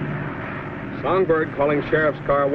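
A man talks over the drone of an engine.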